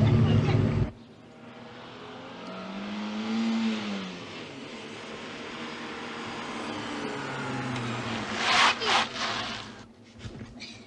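A car drives along a road, its engine rising and falling.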